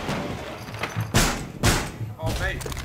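Wooden boards knock and thud as a barricade is put up.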